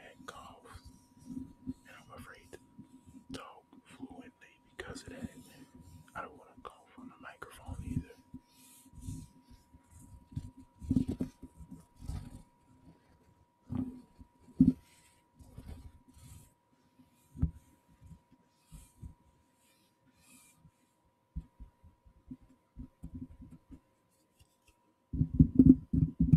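Small plastic clicks and knocks come from a handheld device being handled.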